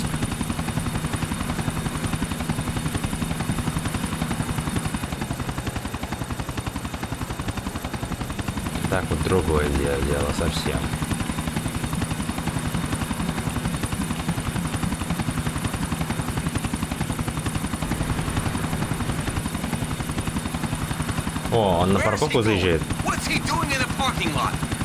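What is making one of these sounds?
Helicopter rotor blades chop steadily and loudly overhead.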